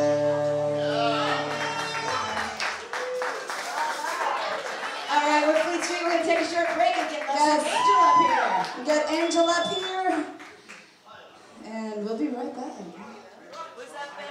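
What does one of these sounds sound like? A live band plays on stage.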